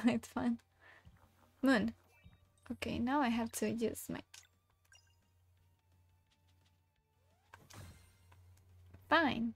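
A young woman talks with animation into a microphone, in a high voice.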